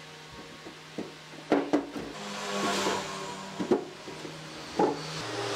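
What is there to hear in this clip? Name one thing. Wooden pieces knock together as they are fitted in place.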